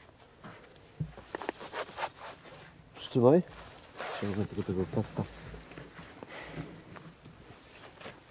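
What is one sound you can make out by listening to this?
A boy handles a dirt bike, making faint clicks.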